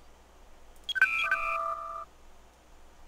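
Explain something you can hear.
Electronic menu beeps sound in short tones.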